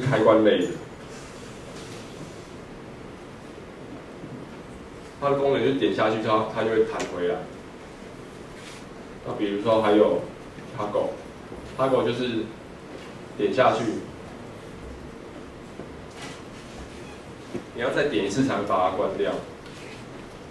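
A young man speaks calmly through a microphone, in bursts with pauses, in a hall with some echo.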